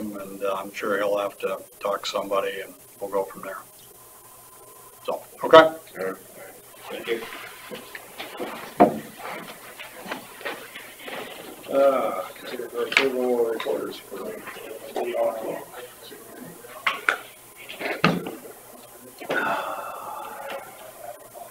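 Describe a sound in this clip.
Men talk calmly, heard through a distant room microphone.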